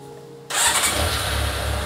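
An inline-four motorcycle engine starts up.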